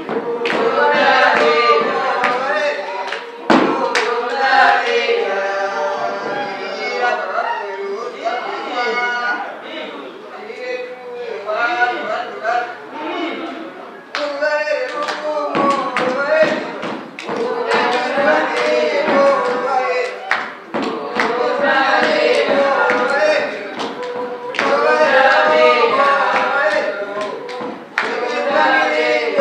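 A group of women sing together loudly and steadily.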